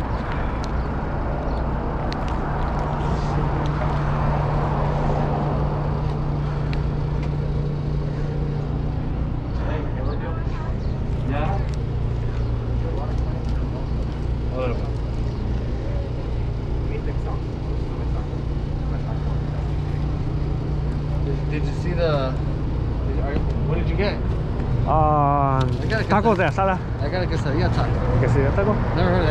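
A generator on a food truck hums steadily.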